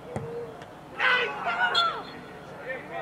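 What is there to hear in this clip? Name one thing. Men shout and cheer outdoors at a distance.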